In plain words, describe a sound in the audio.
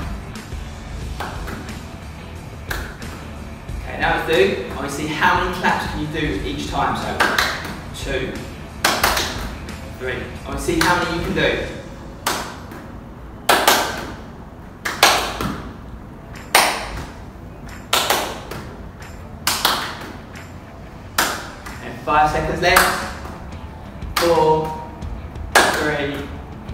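A ball slaps into a man's hands again and again.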